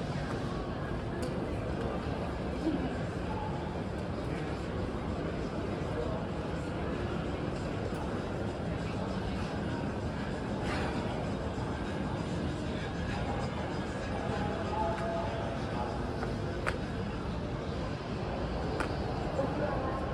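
A quiet street hums outdoors.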